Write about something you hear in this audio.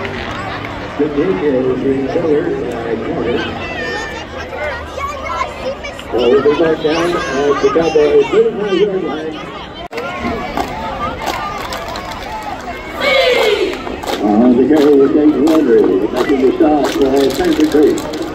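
A group of women chant cheers in unison outdoors.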